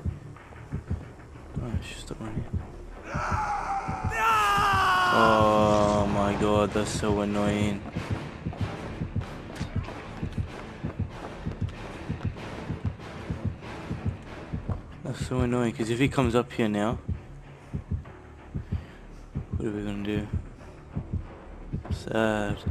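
Quick footsteps thud on wooden boards.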